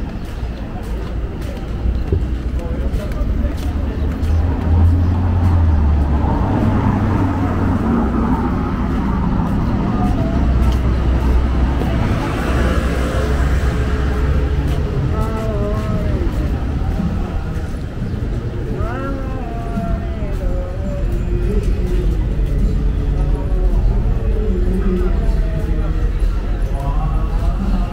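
Traffic hums steadily on a nearby city street.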